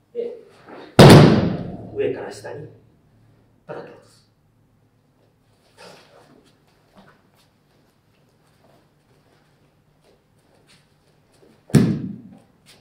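A body thuds heavily onto a mat.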